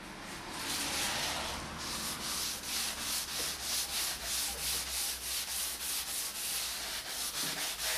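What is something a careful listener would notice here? A sanding block scrapes quickly back and forth over wood.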